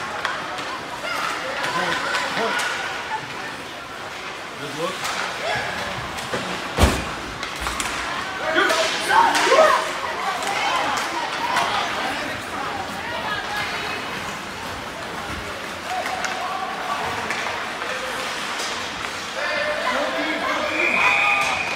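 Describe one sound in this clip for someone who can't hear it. Spectators chatter and cheer in a large echoing arena.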